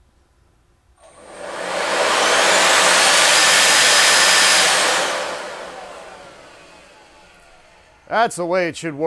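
An electric motor spins a supercharger up to a loud, high whine and then slowly winds down.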